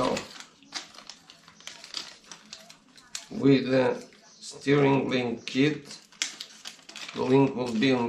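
A plastic bag crinkles and rustles in hands.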